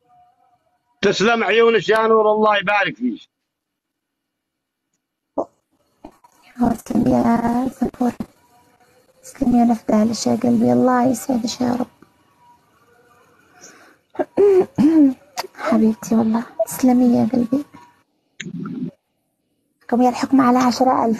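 A middle-aged man talks over an online call, in short bursts.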